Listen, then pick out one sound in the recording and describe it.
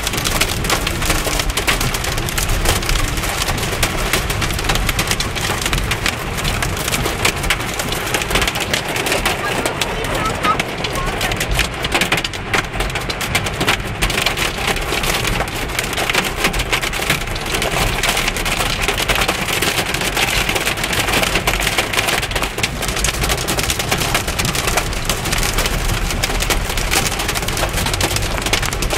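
Heavy rain pounds hard and steadily on a car's windscreen.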